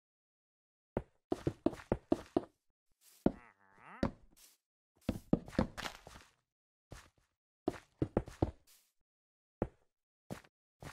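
Stone blocks are set down with short, hard thuds.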